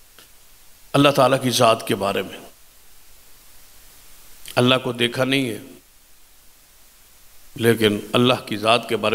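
A middle-aged man speaks forcefully into a microphone in bursts, with pauses between phrases.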